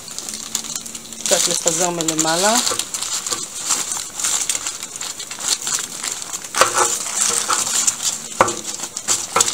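Paper crinkles as diced potatoes are tipped out of it.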